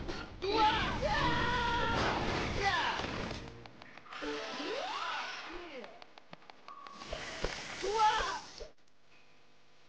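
Blows land with quick thuds and whacks.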